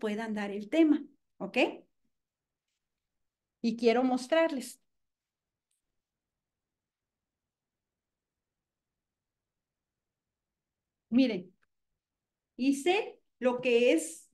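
A woman speaks with animation into a close microphone, in short bursts between pauses.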